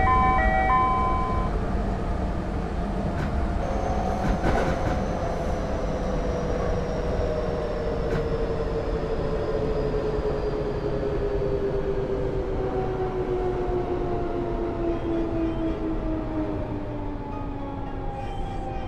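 A train rumbles along the rails at a steady pace.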